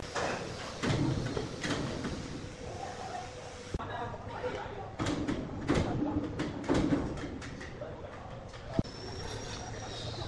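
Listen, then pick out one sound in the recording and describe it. Heavy wooden planks knock and thud against each other in a large echoing shed.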